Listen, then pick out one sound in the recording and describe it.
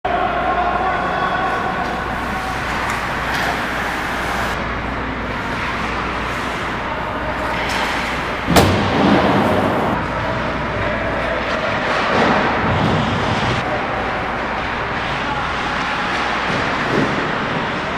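Skates scrape and carve across ice in a large echoing rink.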